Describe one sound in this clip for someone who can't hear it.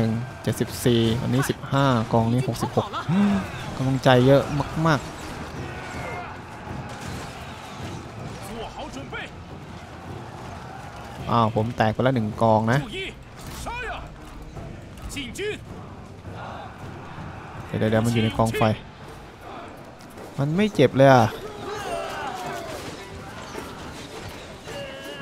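Soldiers clash in a noisy battle.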